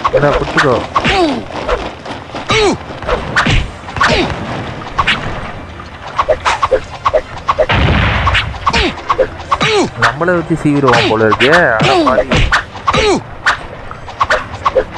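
Short, bouncy game sound effects chirp and swoop in pitch.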